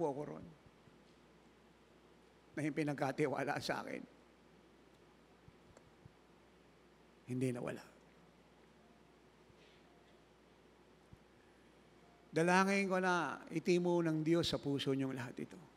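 An elderly man speaks slowly and calmly through a microphone, with long pauses.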